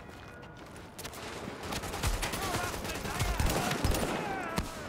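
Gunshots fire in quick bursts, booming and cracking.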